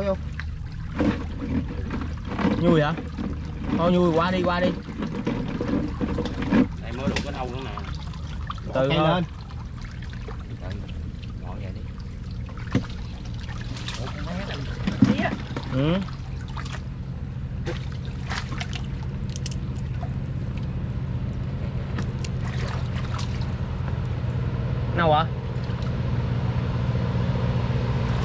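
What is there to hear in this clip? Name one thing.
Hands splash and slosh in muddy water.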